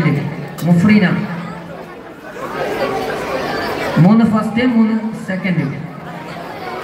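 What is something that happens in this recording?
A man speaks loudly through a loudspeaker in an open outdoor space.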